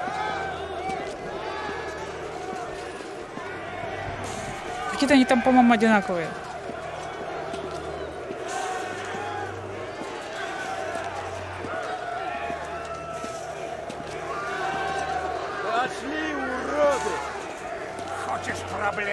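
A crowd of men chatters and calls out nearby.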